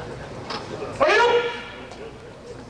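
A man shouts sharply.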